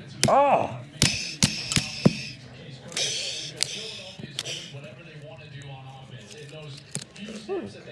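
Plastic toy bricks click and clatter together.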